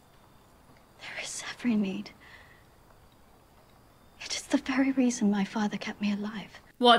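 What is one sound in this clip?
A woman speaks quietly and calmly, close by.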